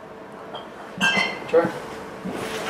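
A glass clinks as it is set down.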